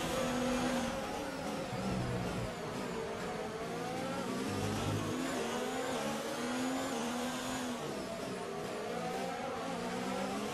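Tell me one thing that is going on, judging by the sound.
A racing car engine drops in pitch as the car brakes hard for corners.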